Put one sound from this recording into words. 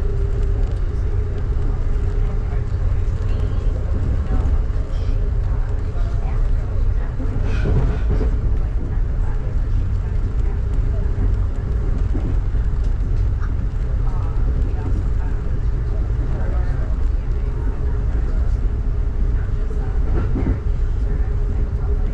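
Rain patters on a train window.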